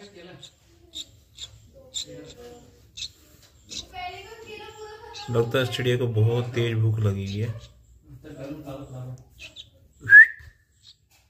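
A baby bird cheeps in short, high chirps.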